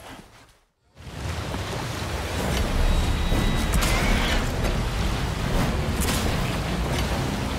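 A boat motor roars steadily.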